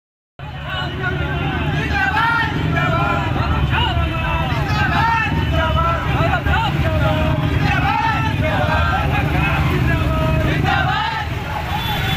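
A crowd of men talk and shout over one another outdoors.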